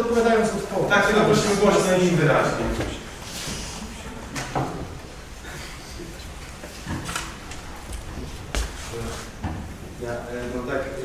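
A man speaks with animation through a microphone in a room with some echo.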